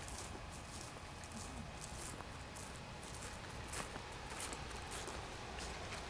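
Footsteps crunch through dry stubble close by.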